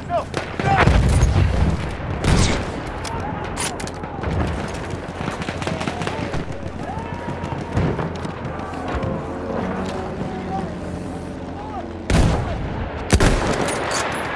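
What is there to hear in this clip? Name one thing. A bolt-action rifle fires sharp, loud shots.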